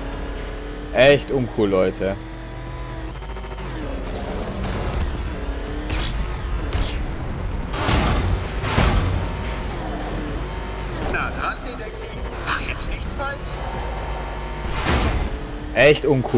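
Metal crashes and scrapes against walls.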